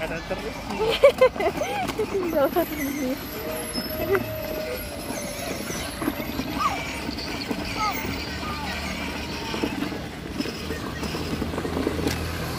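A toy car's small electric motor whirs.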